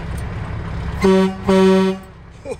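An air horn blasts twice loudly.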